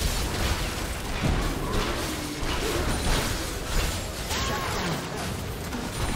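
Sharp hits and blasts clash repeatedly.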